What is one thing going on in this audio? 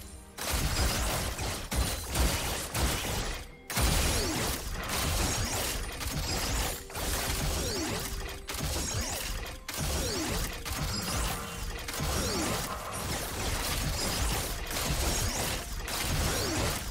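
Video game combat effects clash, zap and whoosh rapidly.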